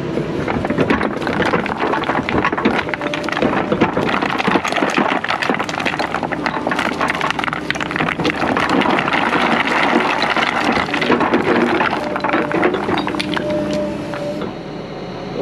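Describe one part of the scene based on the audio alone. An excavator engine rumbles close by.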